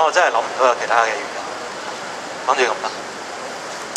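A young man speaks loudly into a microphone through loudspeakers outdoors.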